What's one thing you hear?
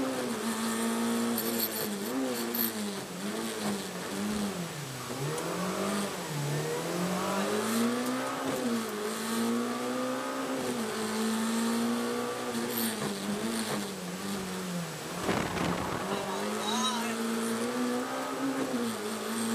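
A rally car engine roars loudly from inside the cabin, revving up and down between gear changes.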